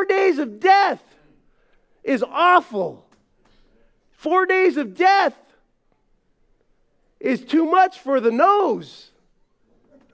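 A middle-aged man speaks in short, expressive phrases through a microphone.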